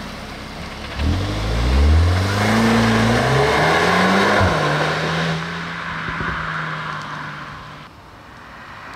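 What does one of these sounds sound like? A car engine revs hard as the car accelerates away and fades.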